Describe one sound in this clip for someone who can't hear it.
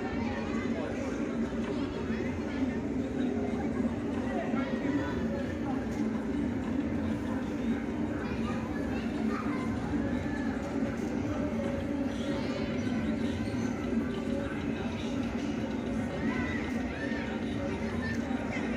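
A crowd of men and women shout and chatter from nearby rooftops outdoors.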